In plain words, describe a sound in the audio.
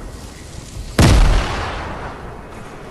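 A loud explosion booms close by and rumbles away.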